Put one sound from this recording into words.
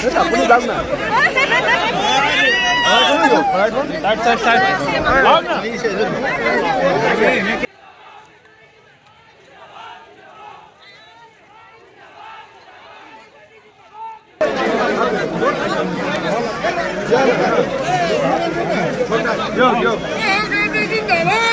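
A dense crowd of men and women talks and shouts close by.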